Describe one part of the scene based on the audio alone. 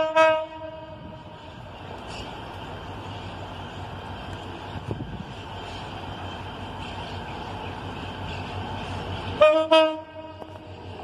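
A train horn blows loudly twice.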